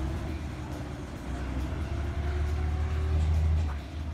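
Train wheels clatter over rail points.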